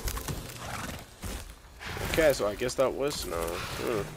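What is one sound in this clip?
A large beast's hooves thud on dirt ground.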